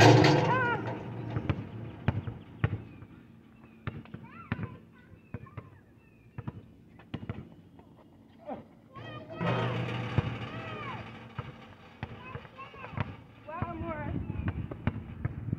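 A basketball bounces on hard pavement with sharp thuds.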